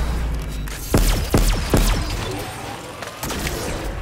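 A portal crackles and hums.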